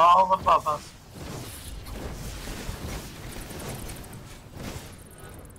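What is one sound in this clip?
Magic blasts crackle and whoosh in quick bursts.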